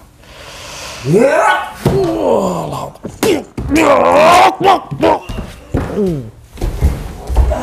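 Men shout and groan with strained voices close by.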